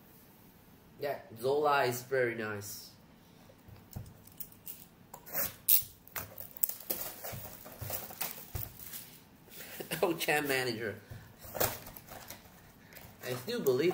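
Cardboard packaging rustles and taps as it is handled close by.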